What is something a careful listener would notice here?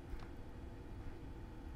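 A screwdriver turns a small screw in metal.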